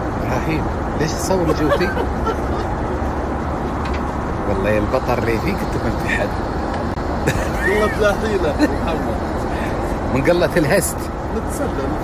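A man laughs heartily nearby.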